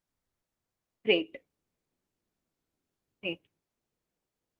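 A young woman speaks briefly and calmly through a computer microphone.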